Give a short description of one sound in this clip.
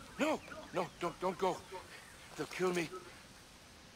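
A man pleads frantically, shouting in fear.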